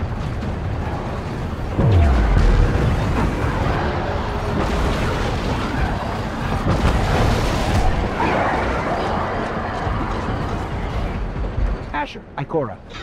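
Gunshots and blasts go off in quick bursts.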